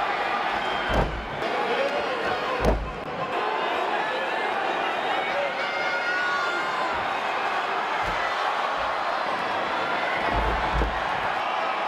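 Bodies slam down hard onto a wrestling ring's canvas.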